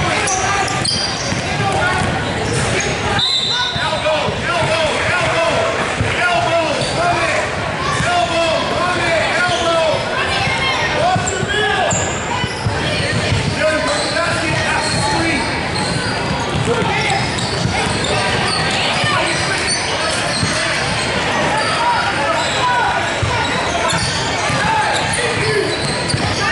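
Sneakers squeak on a gym floor, echoing in a large hall.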